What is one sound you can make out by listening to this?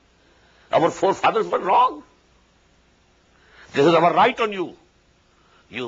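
An elderly man speaks calmly and earnestly into a microphone, pausing between phrases.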